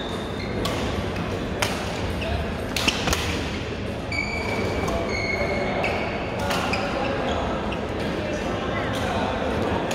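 Shuttlecocks are hit with sharp pops of rackets.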